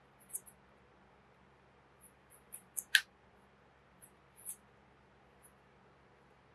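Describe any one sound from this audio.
Soft clicks and taps come from a rubber case being handled.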